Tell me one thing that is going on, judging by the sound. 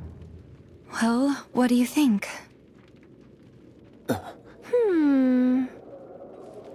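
A young woman speaks softly and hesitantly.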